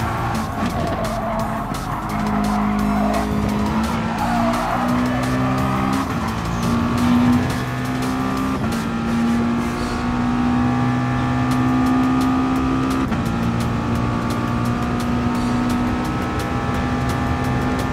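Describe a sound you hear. A racing car engine roars at high revs, rising in pitch and dropping briefly with each gear change.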